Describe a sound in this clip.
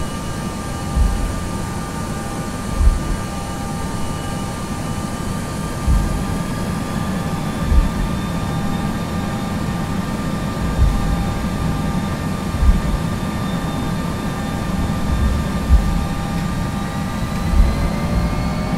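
Aircraft wheels thump over runway joints.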